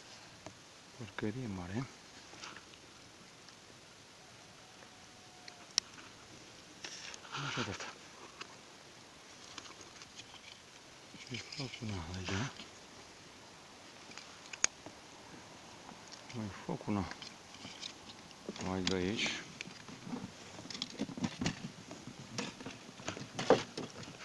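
A man speaks close by in short, calm bursts.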